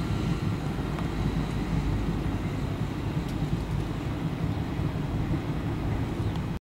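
A freight train rumbles steadily along the tracks, its wheels clacking on the rails.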